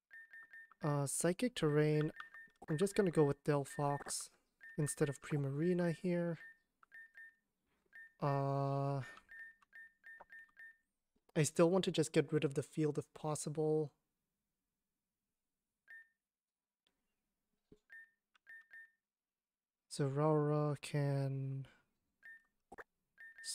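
Short electronic beeps blip as a game menu cursor moves.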